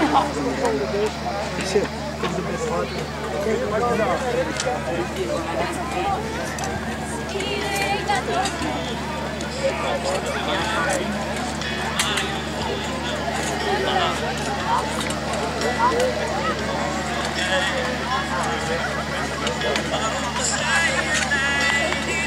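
A crowd of men, women and children chatters all around outdoors.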